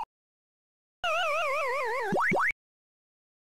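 A jingle of wavering electronic tones plays and ends with quick rising blips.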